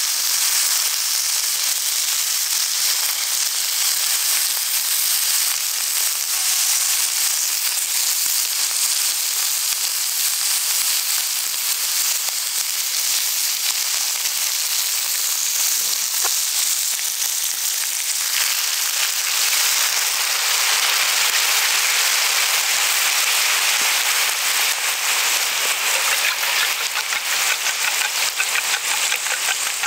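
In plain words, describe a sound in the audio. Meat sizzles steadily in a hot pan.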